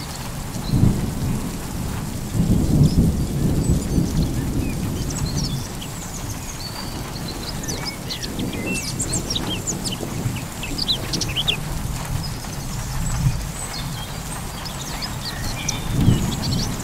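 Wind gusts outdoors, rumbling low.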